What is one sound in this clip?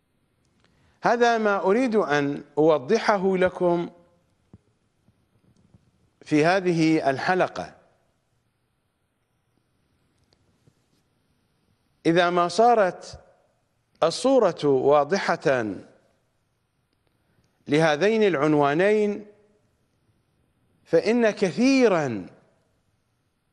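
A middle-aged man speaks with animation into a microphone, in bursts with pauses.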